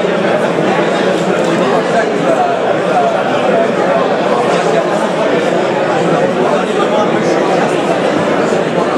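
A crowd of men and women chatter loudly all around in a large echoing hall.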